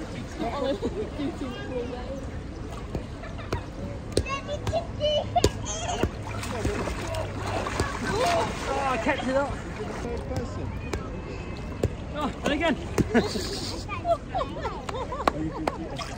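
A ball smacks against hands.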